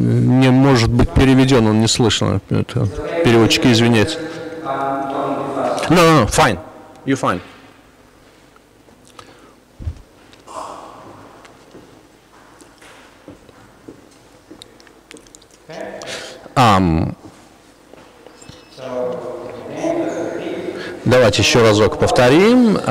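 A middle-aged man speaks into a microphone in a room with some echo, pausing now and then.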